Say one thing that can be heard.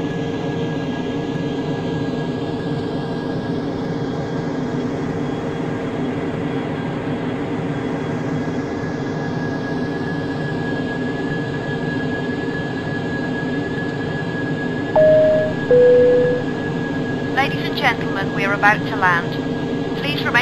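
Jet engines roar with a steady, even drone.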